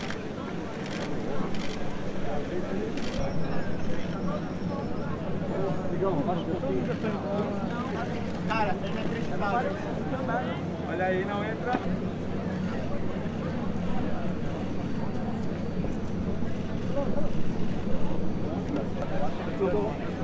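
A crowd of men murmur and chatter outdoors.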